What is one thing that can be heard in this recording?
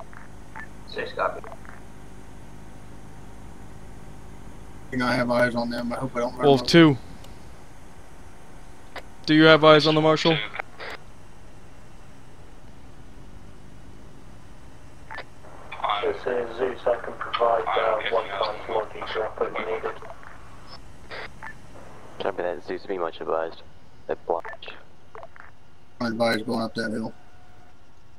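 A man talks calmly into a microphone, heard close up.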